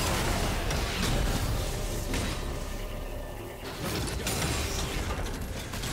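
Spell effects crackle and burst in a fast game battle.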